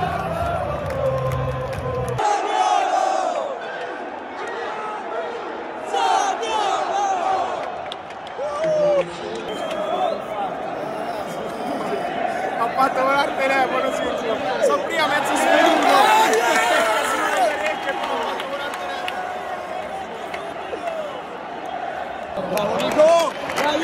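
A large crowd chants and sings loudly in a big echoing stadium.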